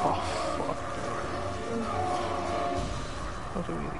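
A monster growls and snarls close by.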